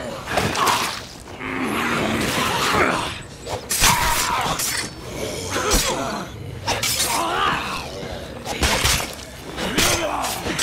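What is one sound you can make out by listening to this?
Heavy blows thud in a scuffle.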